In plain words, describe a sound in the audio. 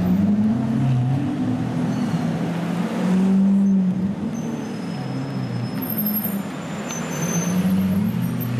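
A sports car engine rumbles deeply nearby, its pitch rising and falling as it revs.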